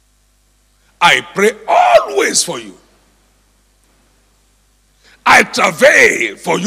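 An elderly man speaks forcefully through a microphone in a large hall.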